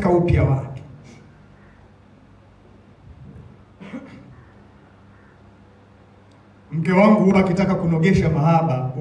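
A man speaks calmly into a microphone through loudspeakers, with long pauses.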